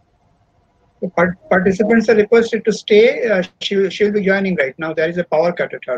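A man talks loudly and with animation over an online call.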